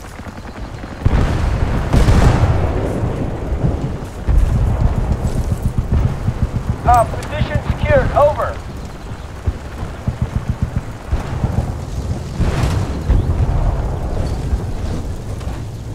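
Explosions boom nearby with rumbling echoes.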